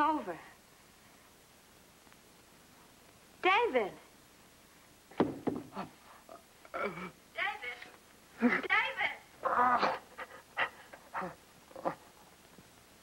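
A person cries out in short, upset bursts of voice.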